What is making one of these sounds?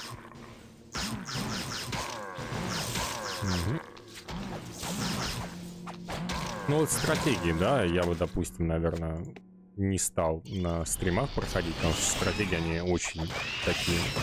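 Swords and spells clash in a game battle.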